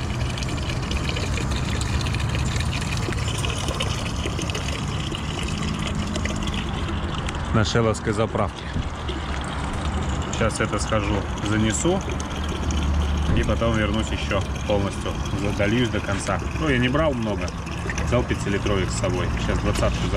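Water splashes from a tap into a plastic bottle.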